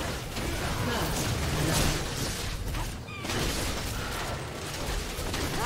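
Video game spell effects crackle and whoosh in a fight.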